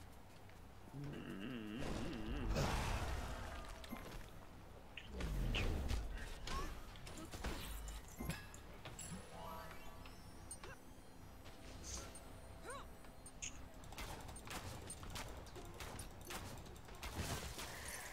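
Magic blasts burst and whoosh during a fight.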